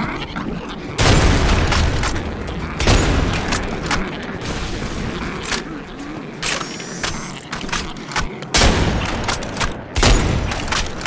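Loud rifle shots boom with a heavy echo.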